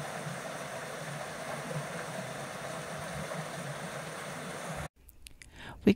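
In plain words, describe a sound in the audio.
Water splashes and trickles steadily from a turning waterwheel.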